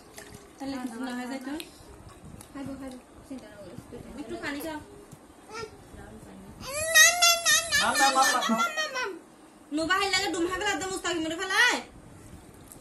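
A toddler babbles and chatters up close.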